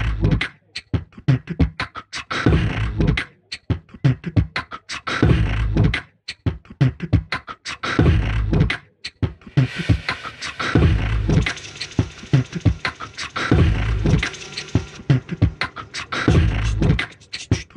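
Drums beat in a steady rhythm.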